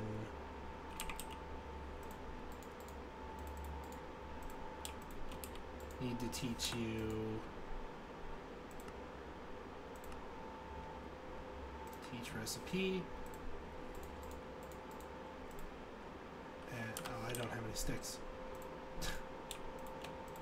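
Soft menu clicks tap now and then.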